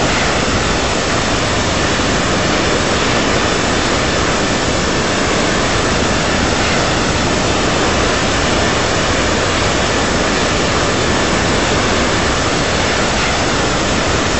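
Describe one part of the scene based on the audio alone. A jet airliner's engines roar steadily in flight.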